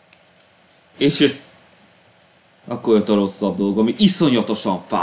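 A young man speaks calmly into a close microphone, as if over an online call.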